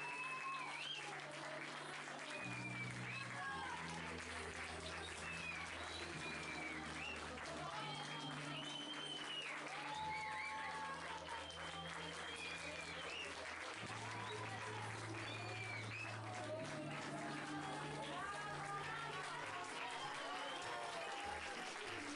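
A group of young people sings together in a room.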